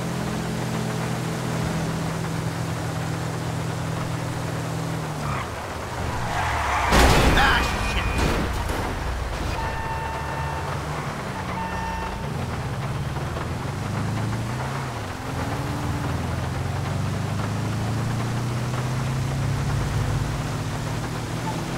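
A van engine drones steadily and revs up and down.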